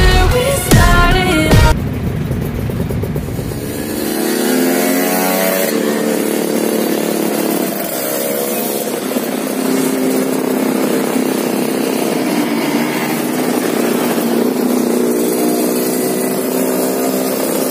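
Motorcycle engines hum and roar nearby.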